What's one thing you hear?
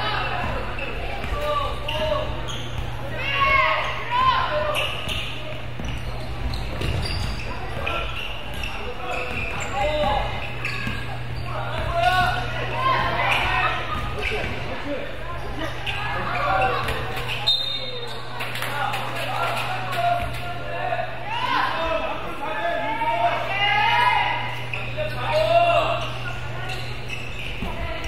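Young boys shout to each other in an echoing hall.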